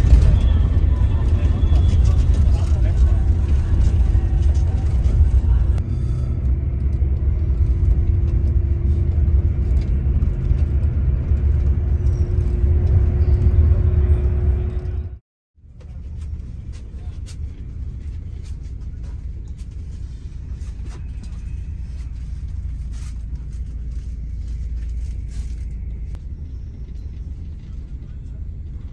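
A bus engine rumbles low and steady from inside the cabin.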